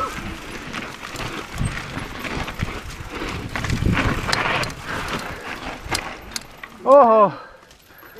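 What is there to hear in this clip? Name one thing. Bike tyres crunch and skid over a loose dirt trail.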